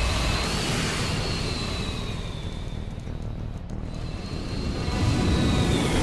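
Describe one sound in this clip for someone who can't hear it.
Jet thrusters roar as a machine boosts through the air.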